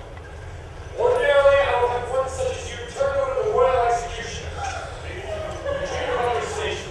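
A young woman speaks calmly in an echoing hall.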